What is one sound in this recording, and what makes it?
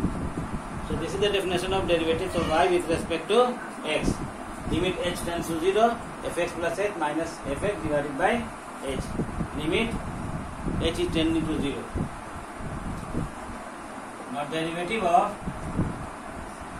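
A middle-aged man speaks calmly, explaining.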